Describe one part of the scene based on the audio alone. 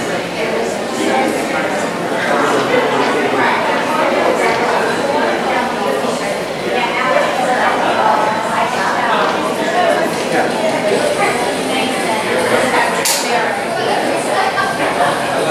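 A man speaks with animation into a microphone, heard over loudspeakers in a large room.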